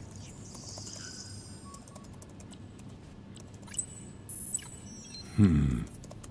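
Electronic interface blips and chirps as menu options are selected.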